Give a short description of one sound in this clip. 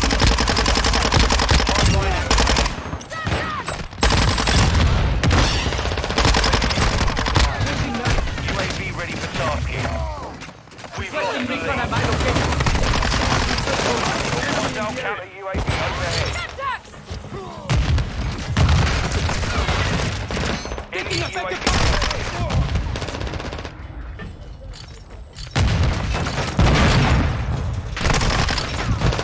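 Game gunfire rattles in rapid bursts.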